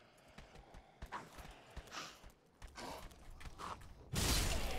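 A heavy sword swings with sharp whooshes.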